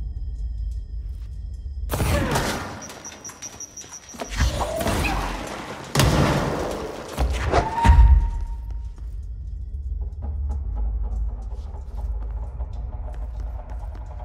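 Debris rattles and clatters across the ground.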